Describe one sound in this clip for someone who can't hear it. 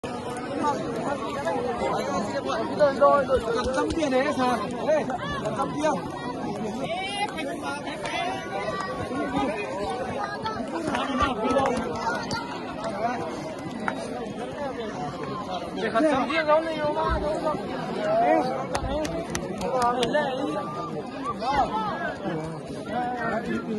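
A crowd of young men talks and shouts excitedly close by, outdoors.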